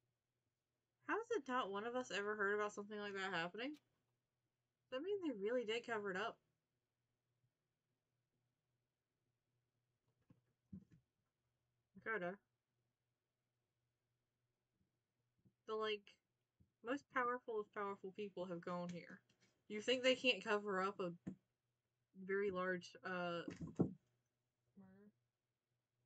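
A young woman talks with animation into a close microphone, in short bursts with pauses.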